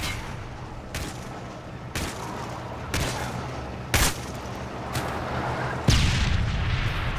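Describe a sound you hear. Gunshots crack sharply, one at a time.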